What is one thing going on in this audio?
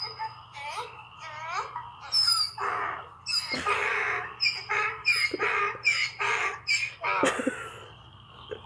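A dog whines and grumbles up close in a string of rising and falling yowls.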